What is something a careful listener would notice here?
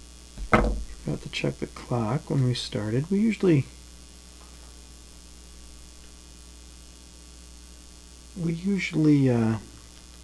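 An older man talks calmly, close to a microphone.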